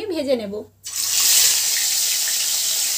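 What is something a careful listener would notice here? Oil sizzles and spits in a hot pan.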